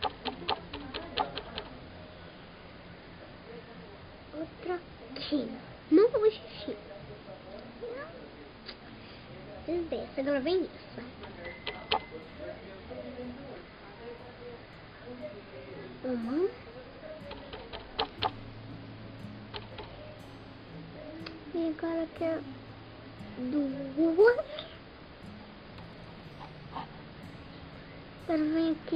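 A young girl talks close to a microphone, with lively rising and falling tones.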